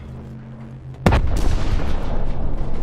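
A rifle fires a single loud, booming shot that echoes.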